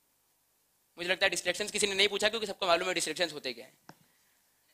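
A young man lectures with animation through a clip-on microphone.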